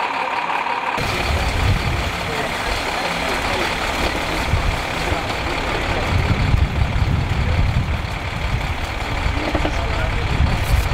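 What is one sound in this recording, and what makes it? A hydraulic rescue tool pumps and grinds on a car's metal frame.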